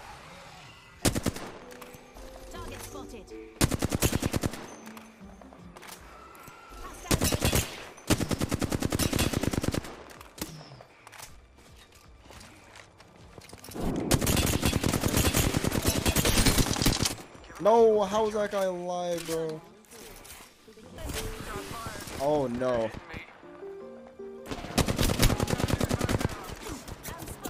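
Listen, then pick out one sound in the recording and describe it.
Rapid gunfire bursts out in short, loud volleys.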